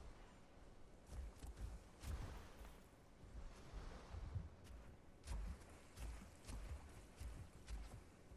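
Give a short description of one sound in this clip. Water splashes and swirls as a large creature swims.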